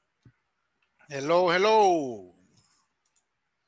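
A man says a few words over an online call.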